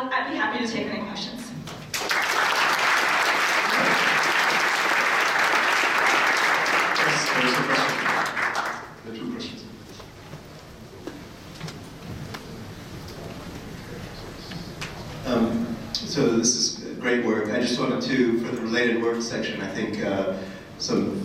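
A young woman speaks calmly into a microphone in a large room.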